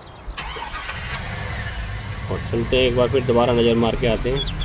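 A car engine hums as a car drives off.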